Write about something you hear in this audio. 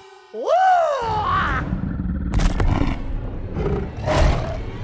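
A large beast growls and roars.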